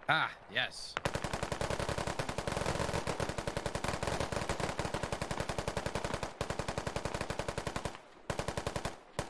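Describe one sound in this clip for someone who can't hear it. Rapid gunfire rattles nearby.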